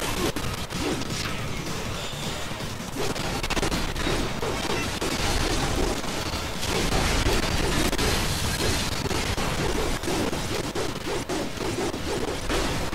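Metal blades clash and slash in quick succession.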